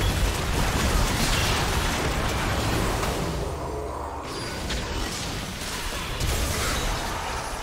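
Spells and weapons clash and explode in a game fight.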